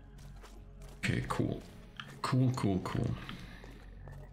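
A man speaks close into a microphone.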